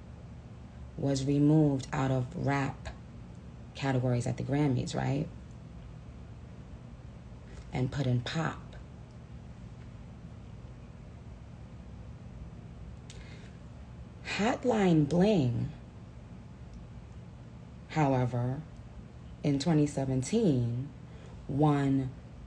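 A young woman speaks close to a phone microphone in short, lively bursts with pauses.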